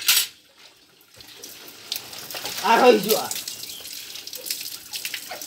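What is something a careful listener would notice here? Water splashes onto a wet floor from a bucket.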